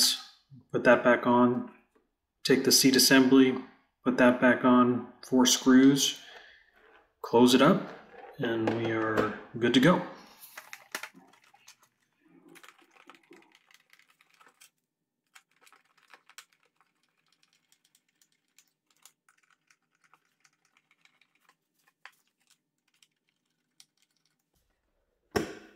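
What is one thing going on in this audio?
Plastic parts click and rattle as hands handle them.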